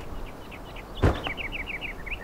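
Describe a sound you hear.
A wooden roof piece breaks apart with a sharp crash.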